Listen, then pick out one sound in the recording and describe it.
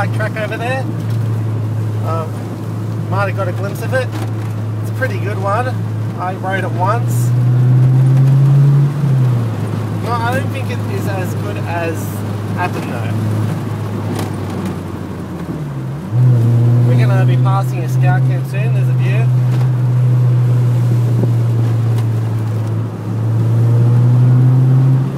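A car engine hums steadily while driving along a road, rising in pitch at times.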